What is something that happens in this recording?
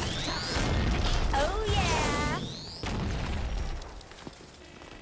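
Heavy blows land in a scuffle.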